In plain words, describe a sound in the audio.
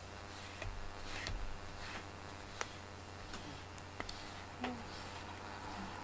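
A brush strokes softly through a cat's fur.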